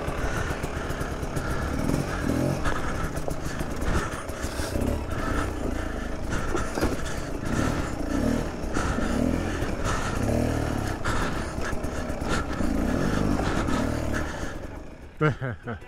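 Tyres knock and scrape over rocks.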